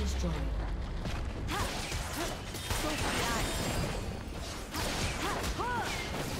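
Magic spells burst and crackle in a fast fight between game characters.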